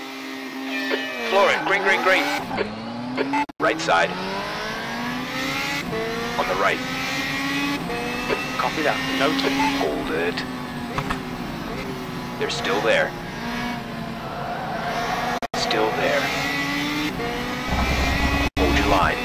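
Several racing car engines roar and whine past close by.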